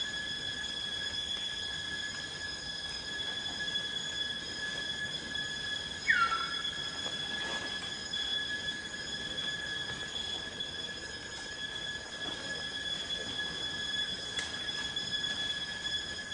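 Leaves and branches rustle as monkeys move in a tree.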